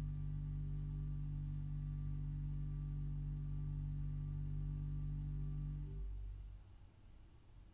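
A pipe organ holds a deep sustained chord, then falls silent in a large echoing space.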